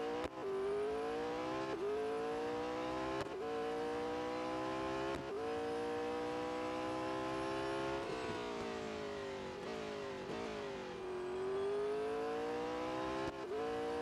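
A race car engine roars, rising in pitch through each gear and dropping sharply at each gear change.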